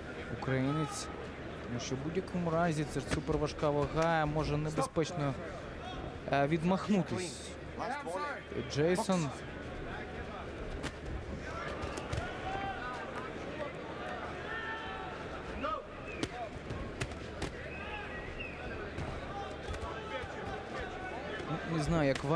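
A large indoor crowd murmurs and cheers throughout.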